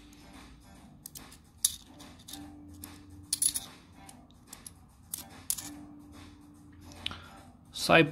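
Metal coins clink softly against each other in a stack.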